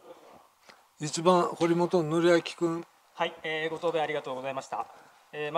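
A middle-aged man speaks over a microphone with a calm, formal voice.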